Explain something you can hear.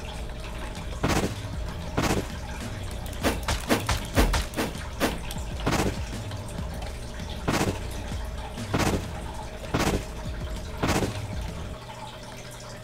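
Sharp blasts and hits crack out again and again in a fight.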